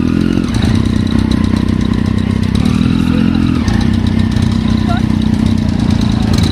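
A motorcycle engine idles close by with a deep, steady rumble.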